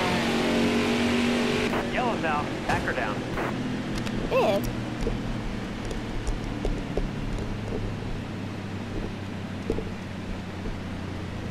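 Several V8 stock car engines drone at a reduced caution pace.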